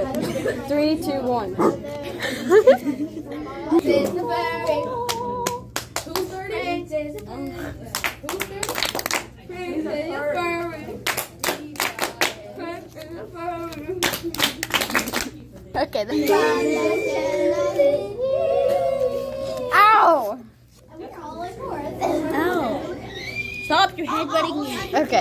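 Young girls talk and sing with animation close to a microphone.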